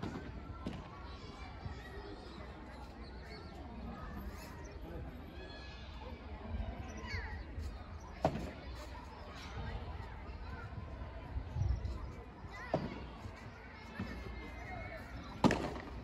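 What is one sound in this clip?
Men call out to each other across an outdoor court.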